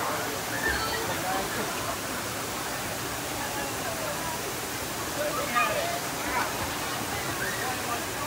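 Water splashes as swimmers move through a pool.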